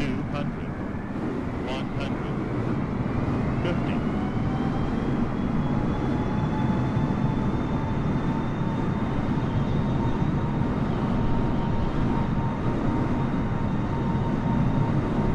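A jet engine whines, rising in pitch and then holding steady.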